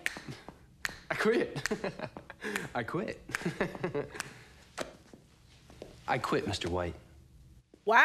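A man laughs close to a microphone.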